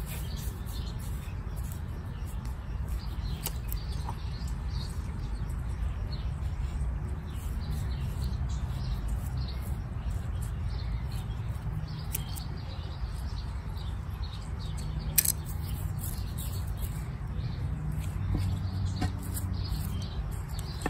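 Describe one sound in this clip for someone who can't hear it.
Fingers rustle and scrape in loose soil.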